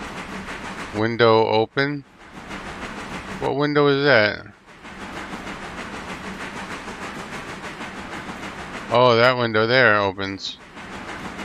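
A steam locomotive's whistle blows in several long, wavering blasts.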